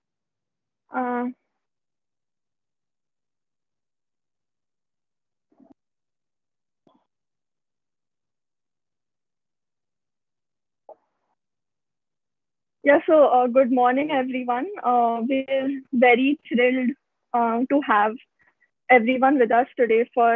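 A teenage girl speaks calmly through an online call.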